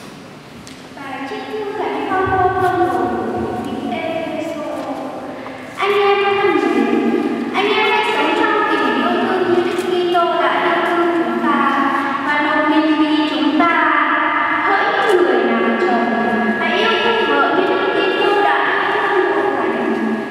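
A young woman sings through a microphone in a large echoing hall.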